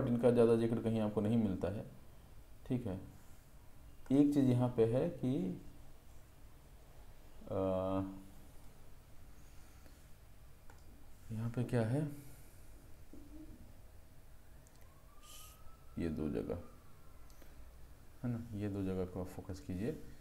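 A young man speaks calmly into a close microphone, pausing often.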